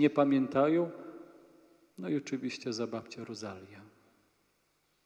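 A man chants through a microphone in a large, echoing hall.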